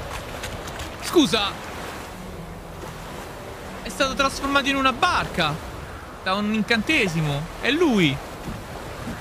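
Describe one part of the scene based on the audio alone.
A young man talks animatedly into a close microphone.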